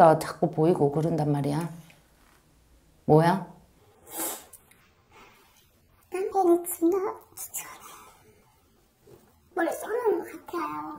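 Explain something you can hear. A woman speaks with animation close to a microphone, in short bursts with pauses.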